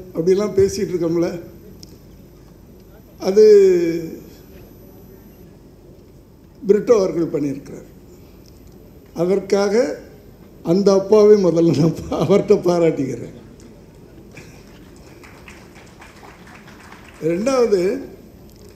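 An elderly man speaks with animation into a microphone, with pauses between phrases.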